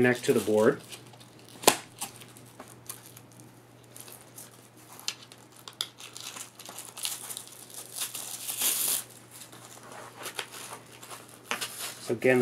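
Rubber straps rustle and creak as hands adjust them.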